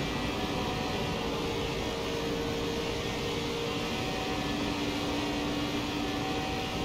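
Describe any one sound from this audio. Tyres hum and rumble on the track.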